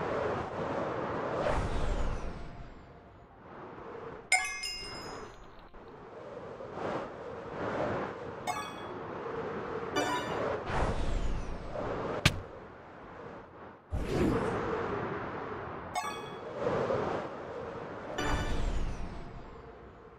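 Wind rushes past in swelling gusts.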